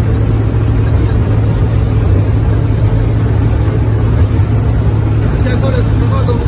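A combine harvester engine drones steadily from inside the cab.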